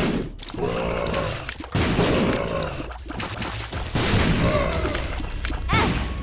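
Small watery shots pop and splat in quick bursts.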